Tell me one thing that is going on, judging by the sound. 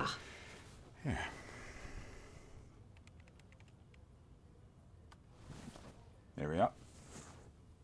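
A man answers briefly over an online call.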